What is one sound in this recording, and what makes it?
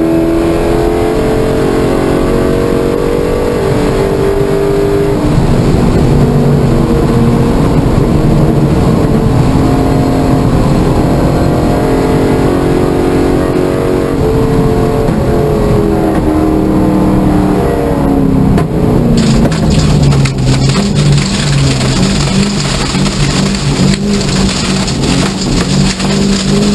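Tyres rumble on the track surface.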